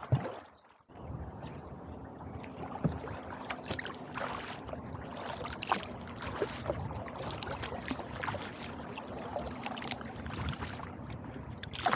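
Calm water laps softly against a kayak.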